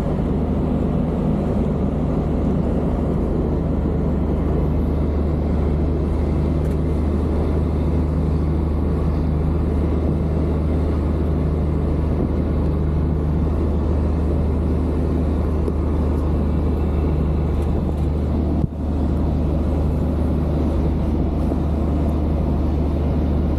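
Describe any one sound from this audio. A truck's diesel engine drones steadily from inside the cab.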